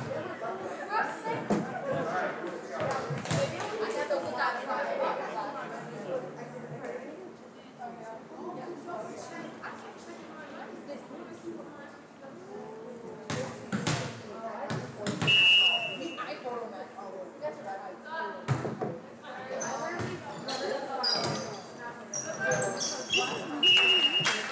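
Players and spectators chatter and call out throughout the gym.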